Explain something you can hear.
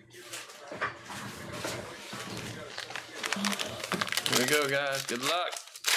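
Hands crinkle and tear open a foil card pack.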